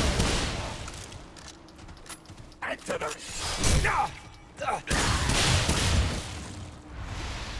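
A heavy gun fires loud bursts of shots that echo.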